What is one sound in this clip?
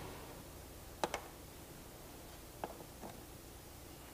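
Small objects knock sharply a few times on a wooden stand.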